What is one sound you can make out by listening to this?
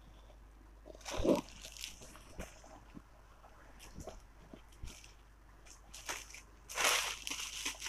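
Silk fabric rustles as it is unfolded and handled.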